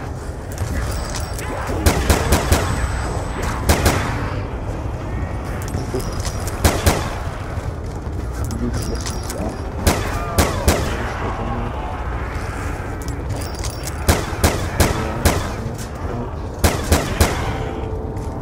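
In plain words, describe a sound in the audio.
Zombies growl and snarl nearby.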